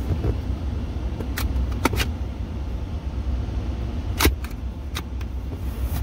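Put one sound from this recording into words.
A plastic cup holder tray clicks as it slides out and snaps back.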